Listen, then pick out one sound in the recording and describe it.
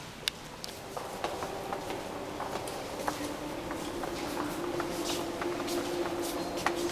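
A crowd of men and women murmur and talk in a large echoing hall.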